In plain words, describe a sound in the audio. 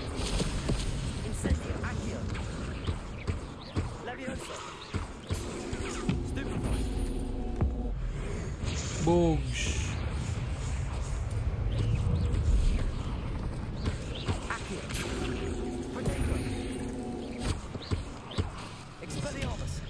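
A young man talks casually close to a microphone.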